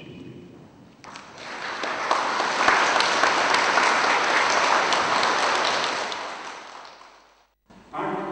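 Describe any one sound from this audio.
A crowd applauds loudly, then the applause fades.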